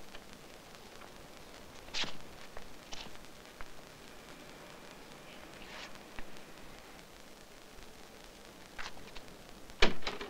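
Shoes scrape and knock against a stone wall.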